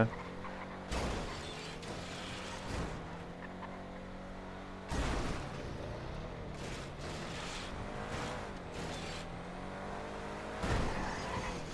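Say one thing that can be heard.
A car thuds as it bumps against a wall.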